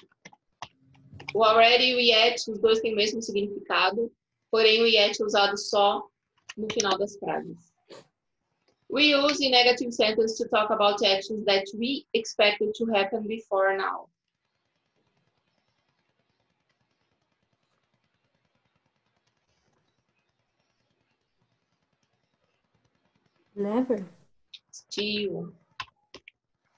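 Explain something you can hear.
A woman speaks calmly over an online call, explaining in bursts with pauses.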